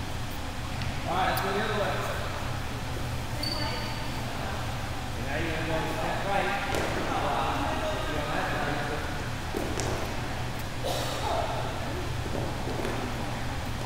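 Young women talk and call out in a large echoing hall.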